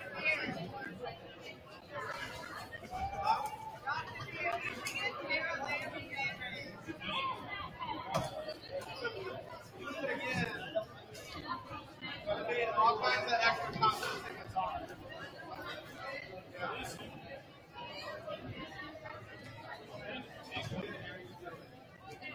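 Men talk nearby in relaxed voices.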